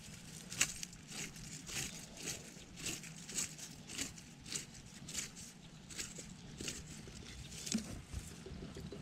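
A sieve shakes with a quick, steady, tapping rhythm.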